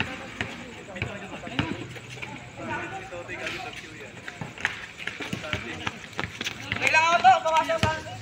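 A basketball bounces on a hard court outdoors.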